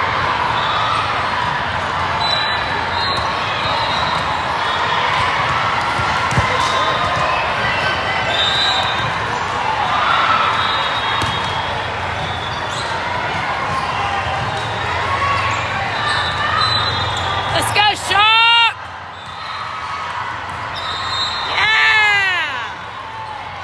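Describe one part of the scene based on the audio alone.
A crowd of players and spectators chatters and calls out across a large echoing hall.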